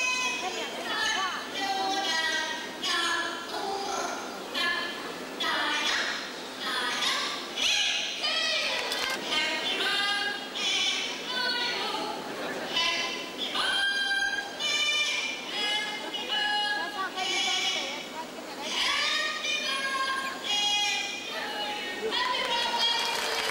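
A parrot squawks and chatters in a high voice.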